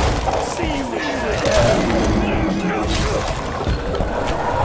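Gunshots ring out.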